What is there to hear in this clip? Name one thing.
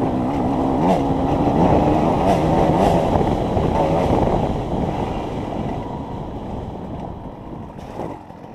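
A dirt bike engine revs loudly up close, then eases off.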